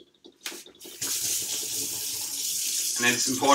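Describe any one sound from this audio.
Water runs from a tap into a bowl.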